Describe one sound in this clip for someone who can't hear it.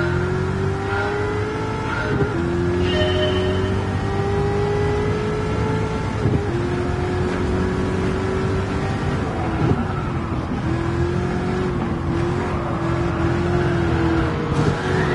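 A racing car engine roars, rising in pitch and dropping sharply at each gear change.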